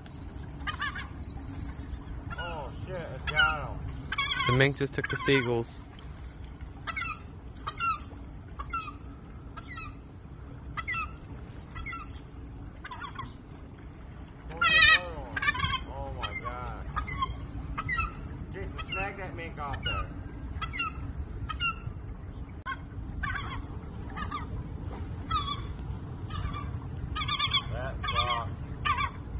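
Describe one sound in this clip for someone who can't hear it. Seagulls cry and squawk repeatedly nearby.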